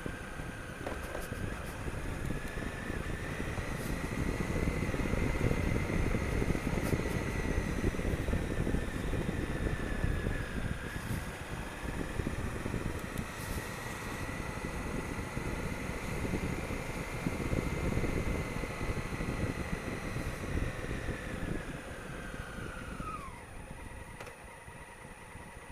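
A motorcycle engine hums steadily as it rides along, with a whining pitch that rises and falls.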